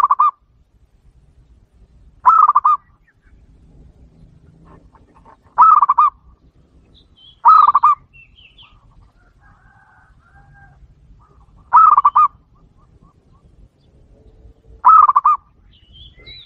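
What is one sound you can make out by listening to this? A dove gives short, trilling coos every few seconds, close by.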